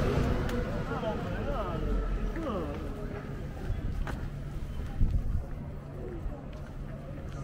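Footsteps tap on pavement as people walk past.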